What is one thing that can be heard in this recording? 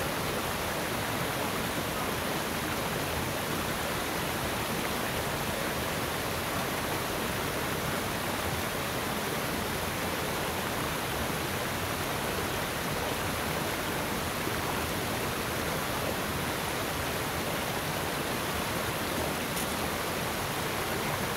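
Water drips and trickles steadily down a rock face outdoors.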